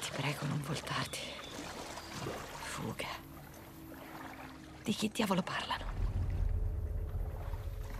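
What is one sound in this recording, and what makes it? Water sloshes as someone wades slowly.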